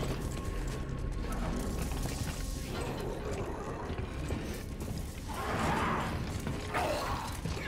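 A low, steady mechanical rumble hums throughout.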